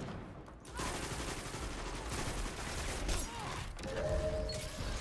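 Rapid gunfire rattles and bangs.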